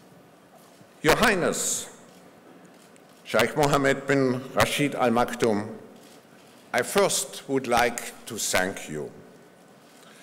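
An elderly man speaks calmly through a microphone in a large hall, with pauses between phrases.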